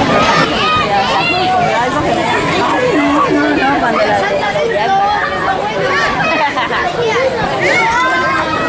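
A crowd of children and adults chatter and shout nearby outdoors.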